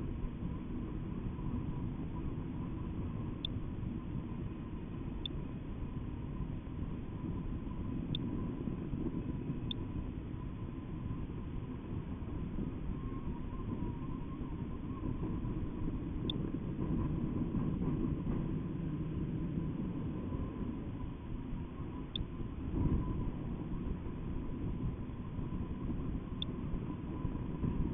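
Wind rushes and buffets steadily against a microphone.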